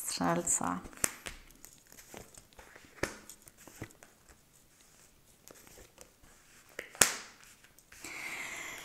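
Playing cards shuffle and slap softly onto a table.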